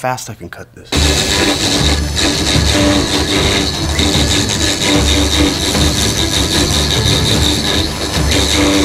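A machine router whirs loudly as it cuts wood.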